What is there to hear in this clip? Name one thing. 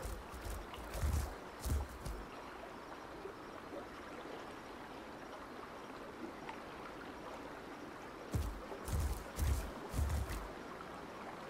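A large animal's footsteps thud softly on grass.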